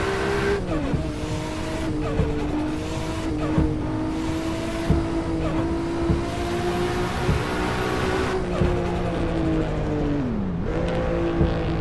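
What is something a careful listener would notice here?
A car engine roars steadily at high revs, dropping in pitch at each gear change.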